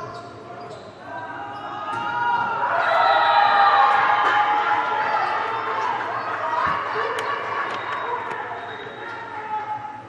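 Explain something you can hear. Young women shout and cheer loudly in an echoing hall.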